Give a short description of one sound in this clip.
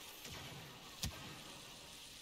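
An explosion bursts close by.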